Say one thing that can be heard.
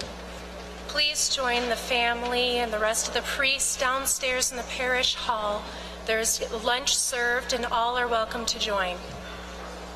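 A woman sings through a loudspeaker, echoing in the hall.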